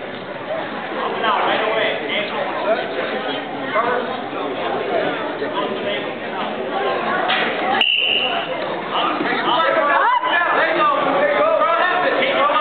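A man calls out loudly nearby in a large echoing hall.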